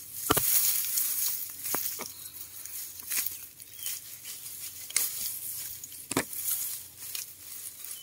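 A knife cuts through lemongrass stalks.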